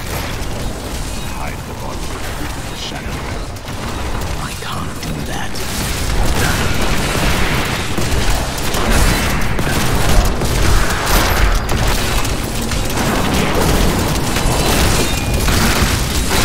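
Magic explosions boom and rumble.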